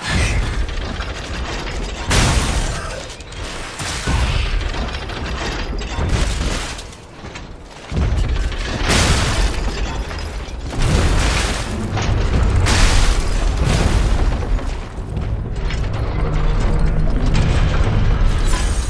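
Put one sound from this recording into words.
Metal weapons clash and strike in a fight.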